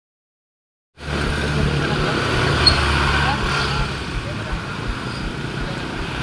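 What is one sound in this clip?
Motorbike engines hum nearby in traffic.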